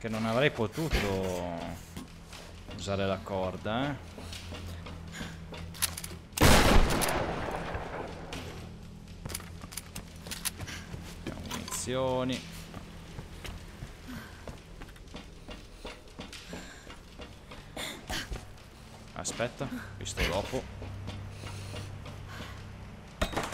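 Footsteps clang on sheet metal and wooden planks.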